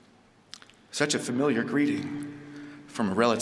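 A man speaks clearly into a microphone, close by.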